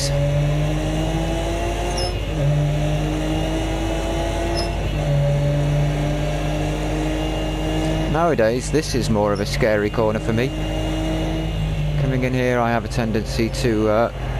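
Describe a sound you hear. A racing car engine drones steadily, rising and falling in pitch as the car shifts gears.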